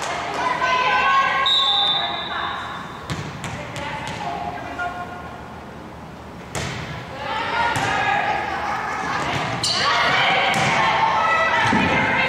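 Young girls call out and cheer across an echoing gym.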